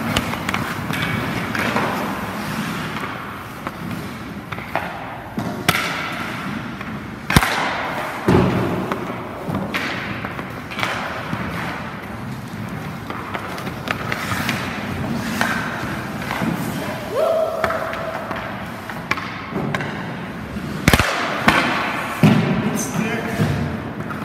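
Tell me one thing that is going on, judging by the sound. Hockey skates scrape and carve on ice in a large echoing rink.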